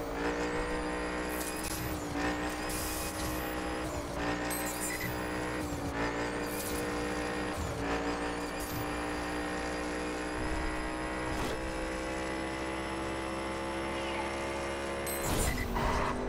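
A racing car engine roars loudly, rising in pitch and dropping with each gear change.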